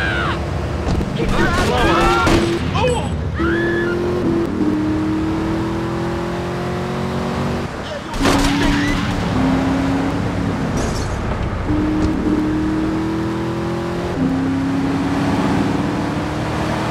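A car engine hums and revs, rising in pitch as it speeds up.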